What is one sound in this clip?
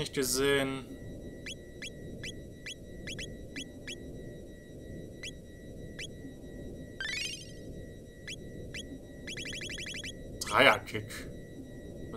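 Short electronic menu blips tick repeatedly.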